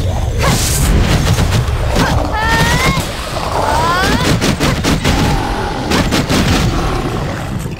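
Magic spells burst and crackle in quick succession.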